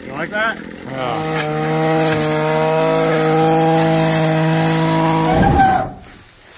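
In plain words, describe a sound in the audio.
A small petrol engine idles steadily, then cuts off.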